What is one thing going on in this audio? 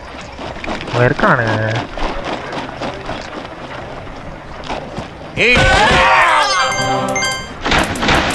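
Cartoonish video game sound effects chime, swoop and clang.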